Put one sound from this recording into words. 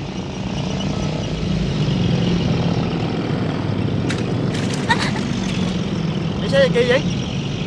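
A jeep engine rumbles by.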